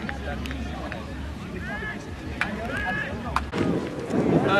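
A young man speaks to a group outdoors.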